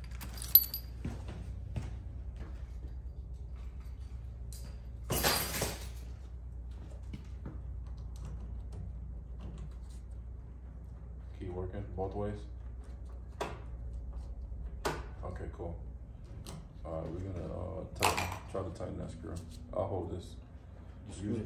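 Metal parts click and clatter.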